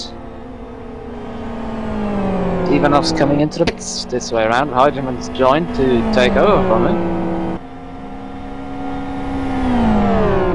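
A racing car engine roars at high revs, its pitch sliding down as it slows.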